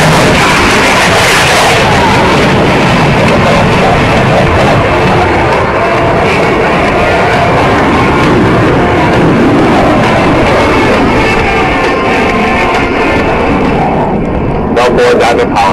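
A jet engine roars loudly overhead.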